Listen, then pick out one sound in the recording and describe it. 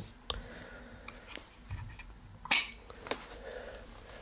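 Plastic parts click and clatter as hands handle a mount.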